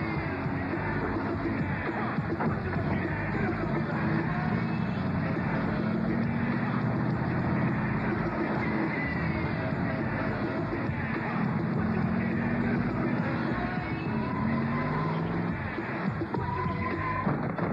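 A monster truck engine rumbles as the truck drives away.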